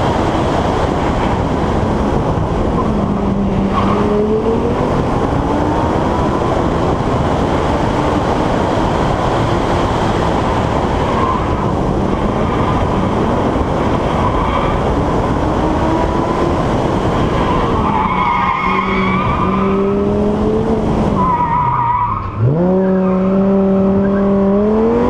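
Wind rushes loudly past an open-top car.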